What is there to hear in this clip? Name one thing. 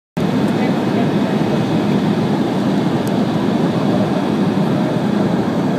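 A jet engine roars steadily from inside an airliner cabin.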